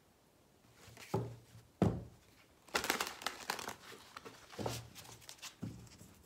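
Playing cards are shuffled and tapped together close by.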